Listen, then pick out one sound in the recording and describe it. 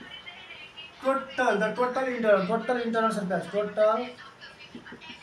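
A man speaks loudly and clearly nearby, explaining.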